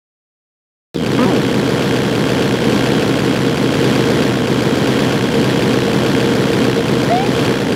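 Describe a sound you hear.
A roaring rush of game fire blasts continuously.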